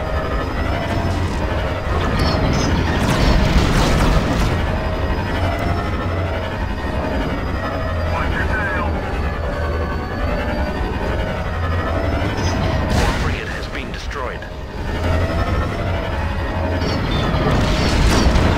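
Starfighter engines roar steadily.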